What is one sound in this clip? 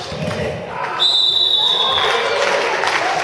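A referee blows a long, shrill whistle.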